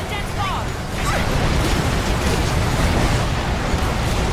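Heavy rumbling of collapsing buildings grows louder.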